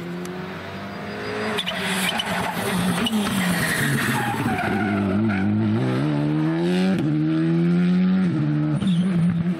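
A turbocharged four-cylinder rally car accelerates hard through the gears as it approaches and passes close by.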